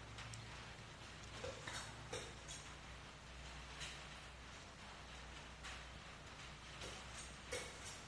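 A spatula scrapes frosting on a cake.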